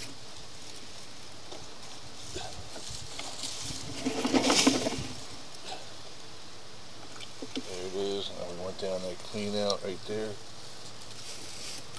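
Leaves and branches rustle and scrape up close.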